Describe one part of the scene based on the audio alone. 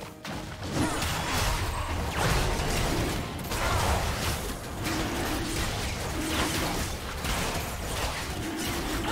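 Fantasy battle sound effects crackle and whoosh as magic spells hit in quick bursts.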